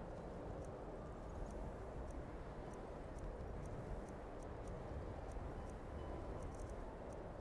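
Soft clicks tick as a game menu list is scrolled.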